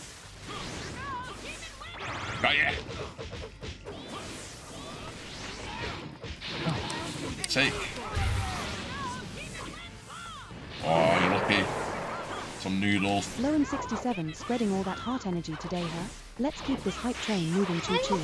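Game fighters shout and grunt in battle.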